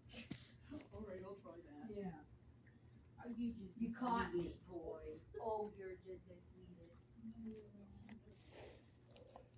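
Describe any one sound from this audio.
A dog sniffs close by.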